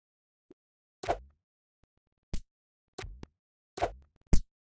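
Short, loud game sound effects pop and thud as a menu opens and closes.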